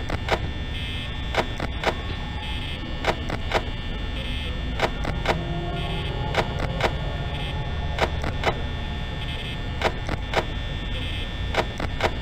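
A desk fan whirs steadily.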